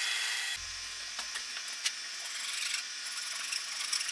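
A metal tool scrapes and clinks against metal.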